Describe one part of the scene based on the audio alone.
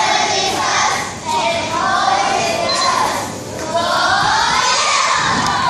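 A choir of young children sings together loudly through loudspeakers.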